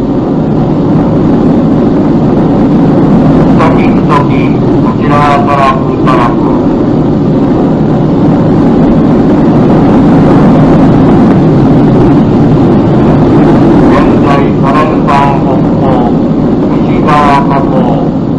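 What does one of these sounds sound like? Aircraft engines drone steadily and loudly.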